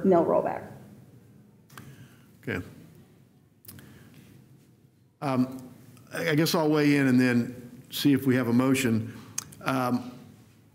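A middle-aged man speaks calmly through a microphone in a quiet room.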